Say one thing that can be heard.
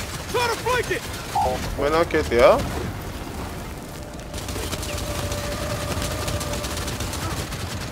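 A rifle fires bursts of shots.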